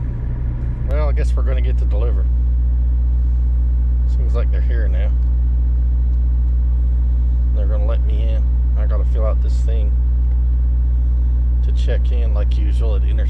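A middle-aged man talks calmly close to a microphone, in short bursts.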